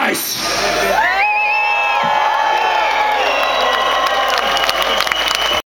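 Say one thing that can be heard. A rock band plays loudly on stage, heard from within the crowd.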